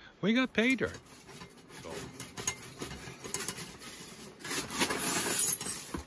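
Metal parts of a small stove clatter as a man handles them.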